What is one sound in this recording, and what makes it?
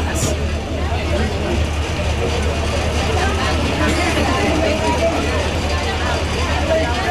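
A crowd of people talks in a busy murmur outdoors.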